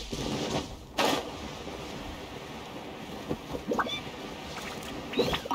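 Wind rushes steadily past while gliding through the air.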